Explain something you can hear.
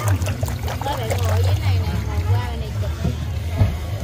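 Fish splash and slurp at the water's surface.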